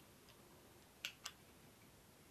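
A screwdriver clicks against a small metal part.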